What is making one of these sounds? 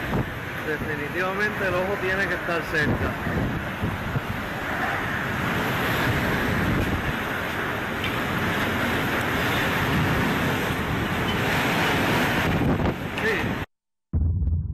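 Strong wind roars outdoors.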